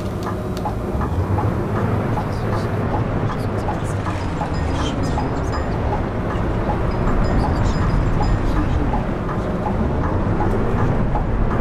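A bus engine revs up and down as the bus drives off.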